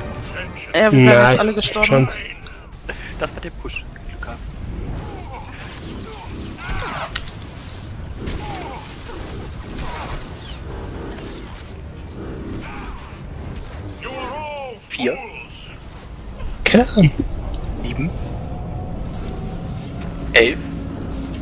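Energy blasts crackle and whoosh during a fight.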